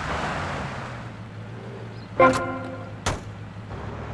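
A car door swings open.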